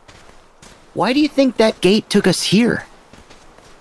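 A cartoonish male voice speaks with animation.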